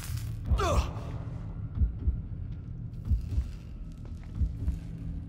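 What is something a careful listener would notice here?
A heart beats with slow, heavy double thumps.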